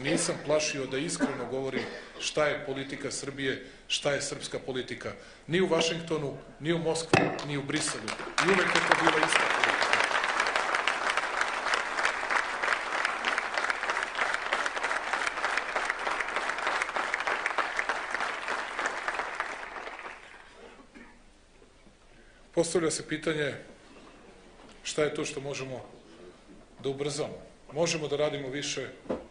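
A man speaks with animation into a microphone in a large hall.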